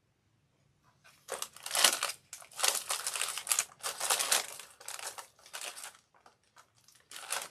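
Plastic wrapping crinkles and rustles as a woman handles it.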